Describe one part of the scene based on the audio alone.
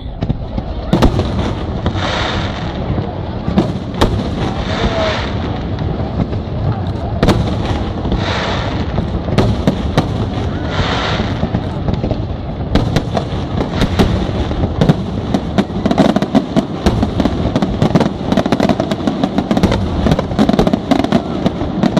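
Fireworks burst and bang loudly outdoors.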